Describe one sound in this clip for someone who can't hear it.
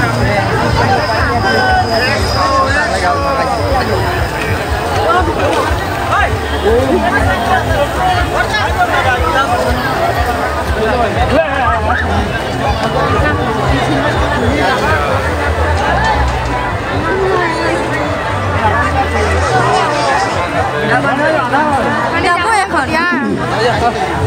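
A dense crowd of men and women chatters all around outdoors.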